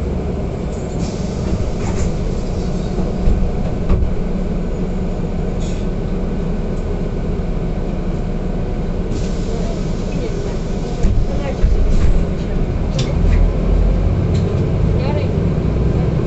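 Loose fittings in a bus rattle and clatter now and then.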